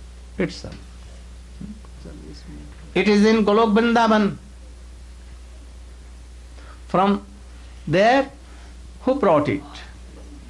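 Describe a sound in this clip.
An elderly man speaks slowly and expressively into a microphone, with long pauses.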